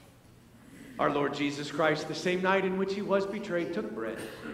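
An elderly man sings a chant into a microphone in an echoing hall.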